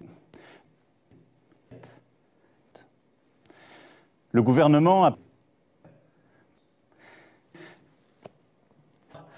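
A middle-aged man speaks calmly and formally into a microphone.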